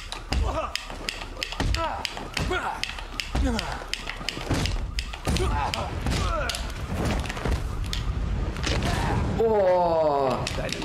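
Punches and kicks land with heavy thuds in a fight.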